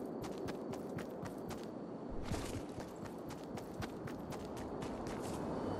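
Quick footsteps run on hard ground.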